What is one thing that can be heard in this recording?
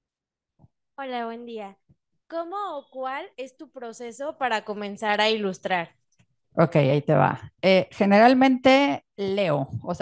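A young woman speaks calmly into a microphone, heard through loudspeakers.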